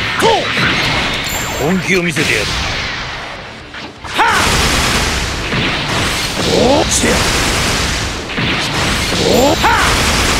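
Energy blasts whoosh and explode in a game battle.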